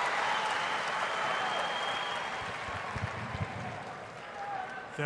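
A crowd cheers and applauds loudly, then fades.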